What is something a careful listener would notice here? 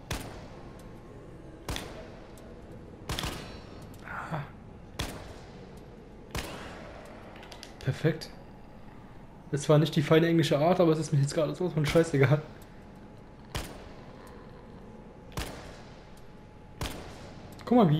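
A pistol fires single shots, each followed by a short echo.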